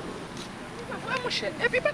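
A man raps with animation close by.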